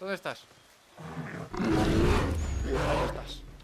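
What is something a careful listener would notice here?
A bear growls and roars.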